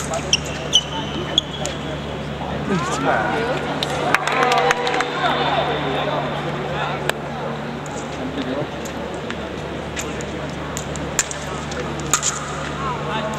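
Fencing blades clash and click sharply.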